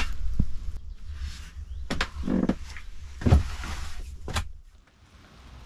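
Wood creaks and knocks nearby.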